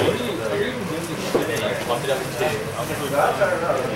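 Playing cards are laid softly onto a table.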